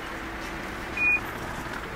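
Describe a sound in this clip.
A ticket gate beeps once.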